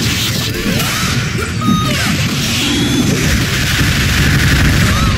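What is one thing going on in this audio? Rapid game blasts and hits crackle and boom.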